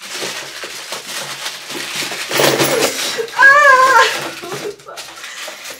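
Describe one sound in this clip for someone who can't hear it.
A handbag rustles as it is searched.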